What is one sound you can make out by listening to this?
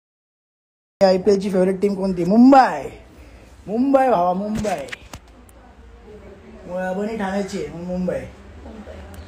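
A young man talks cheerfully and close by.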